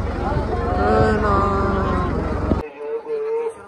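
A crowd of men sings together outdoors.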